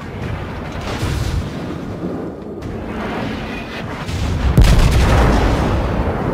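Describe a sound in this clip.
Naval guns fire in heavy booming blasts.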